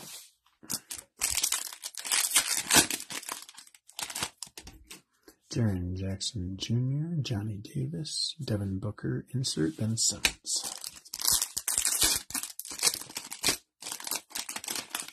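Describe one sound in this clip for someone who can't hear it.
A foil wrapper crinkles and tears open up close.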